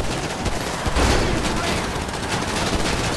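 A car crashes into another car with a thud.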